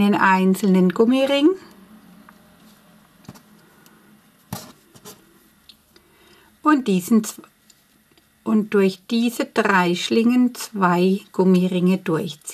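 A crochet hook taps and rustles softly against yarn.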